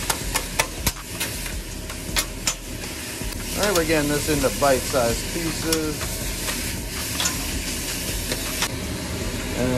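Metal spatulas clank and scrape on a hot griddle.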